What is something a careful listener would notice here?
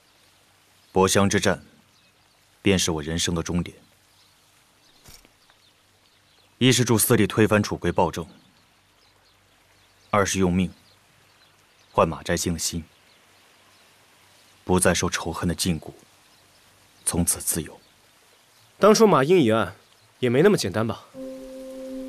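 A young man speaks calmly, with pauses.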